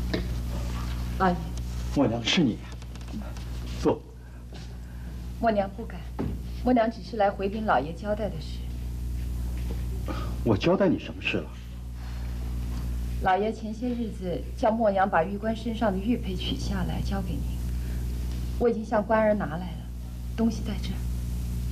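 A woman speaks softly and politely, close by.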